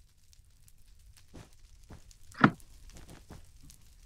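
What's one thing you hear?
Fire crackles softly.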